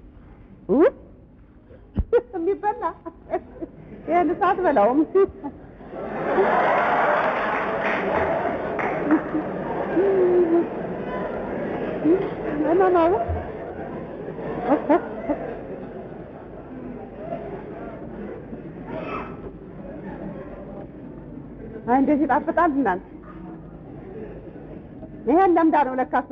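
A middle-aged woman speaks with animation through a microphone.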